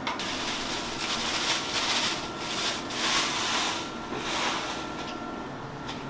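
Steam hisses from a large pot of boiling broth.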